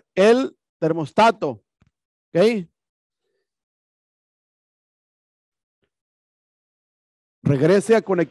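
A man speaks calmly into a headset microphone, in short bursts with pauses.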